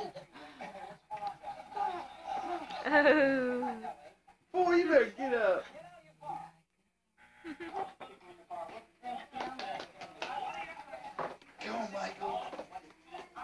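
A woman talks to a baby up close in a high, playful voice.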